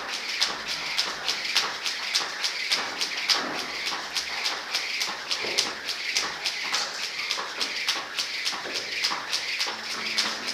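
Feet land lightly on a rubber floor with each jump.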